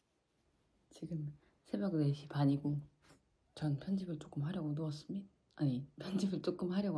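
A young woman talks quietly and close, as if to a microphone.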